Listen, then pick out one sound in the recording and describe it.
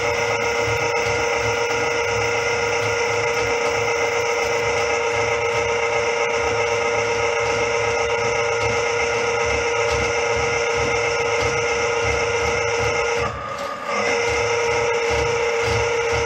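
A drain cleaning machine whirs steadily as its spinning cable feeds into a pipe.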